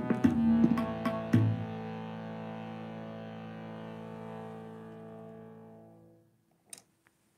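A harmonium plays a sustained chord that slowly fades.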